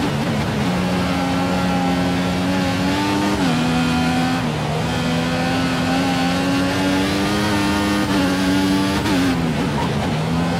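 A racing car engine screams at high revs, dropping in pitch at each gear shift.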